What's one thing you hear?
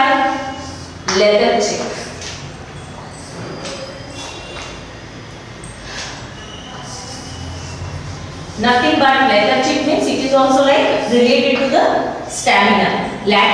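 A woman speaks slowly and clearly, as if teaching.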